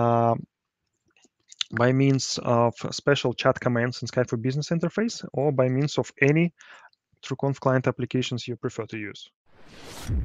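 A man speaks calmly into a headset microphone, heard as if through an online call.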